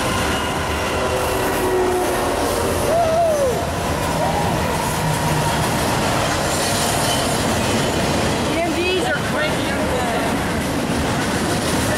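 A freight train rumbles loudly past close by.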